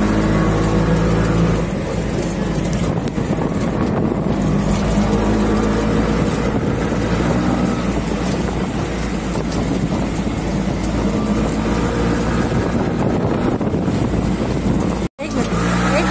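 A small engine drones steadily as a vehicle drives along.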